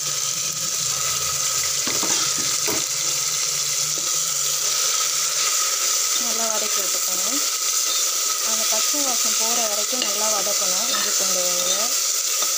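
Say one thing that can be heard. A metal spoon scrapes and knocks against a pot.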